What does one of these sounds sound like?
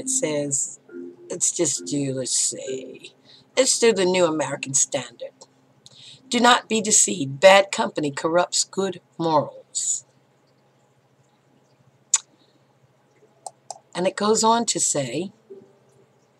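An elderly woman speaks calmly and closely into a microphone, with pauses.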